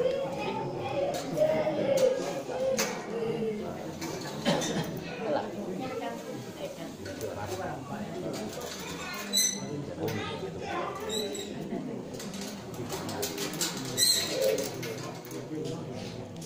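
A boy speaks steadily into a microphone, heard through a loudspeaker in an echoing room.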